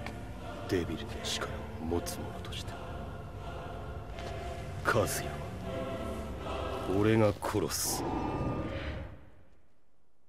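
A young man speaks quietly and intensely.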